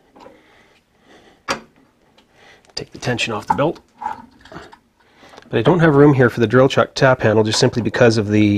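A metal handwheel clicks as it turns.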